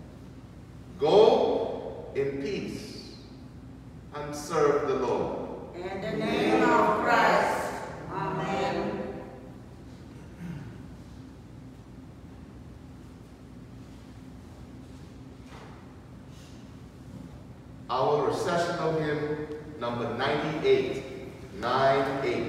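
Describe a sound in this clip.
A man speaks slowly and solemnly through a microphone in an echoing hall.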